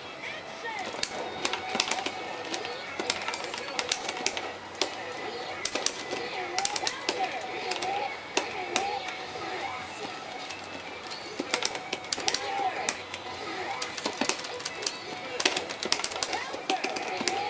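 Punches and kicks land with sharp, rapid hits.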